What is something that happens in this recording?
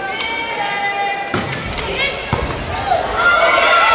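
A volleyball thumps sharply as players hit it in a large echoing gym.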